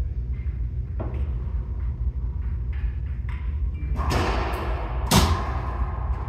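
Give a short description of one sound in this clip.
A rubber ball smacks hard against walls, echoing around a hard, empty room.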